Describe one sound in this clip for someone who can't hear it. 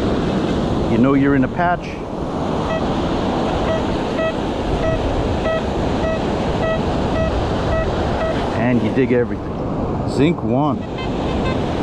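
A metal detector gives warbling, wavering tones when it sweeps over metal.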